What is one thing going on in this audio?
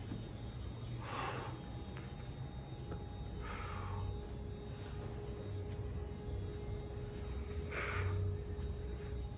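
A man breathes out heavily.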